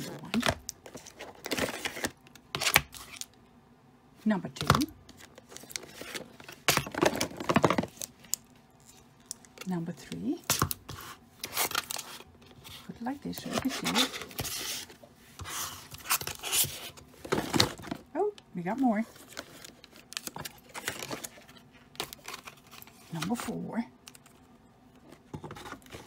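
Cardboard packaging rustles and crinkles as it is handled.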